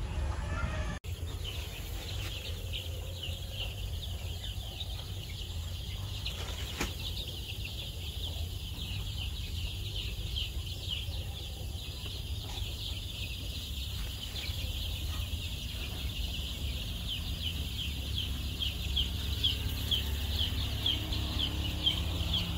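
Many chicks peep shrilly and constantly, close by.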